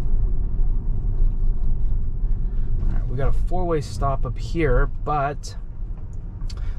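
An electric car's tyres rumble on asphalt, heard from inside the cabin.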